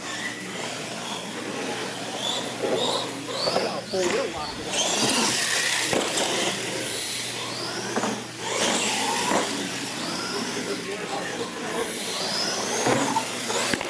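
Plastic tyres bump and clatter over ramps.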